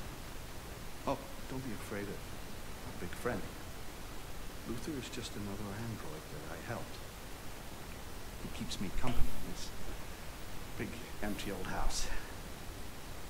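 A man speaks calmly and softly, close by.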